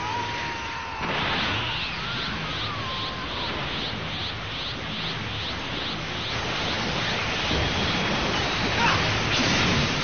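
Energy blasts roar and crackle loudly in a video game fight.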